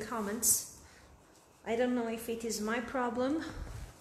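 A rolling pin rolls softly over dough.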